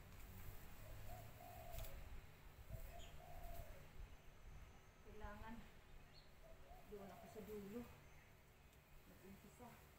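Hand shears snip at a hedge.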